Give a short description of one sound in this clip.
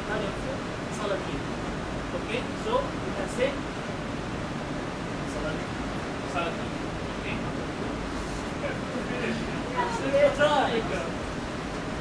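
A man speaks to an audience.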